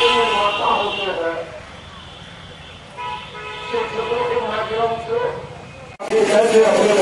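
A man speaks through a microphone and loudspeaker outdoors.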